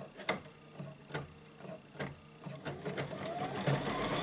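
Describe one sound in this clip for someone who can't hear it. A sewing machine ticks as its needle stitches.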